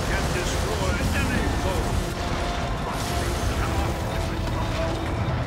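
Video game weapons fire and explosions rumble in a noisy battle.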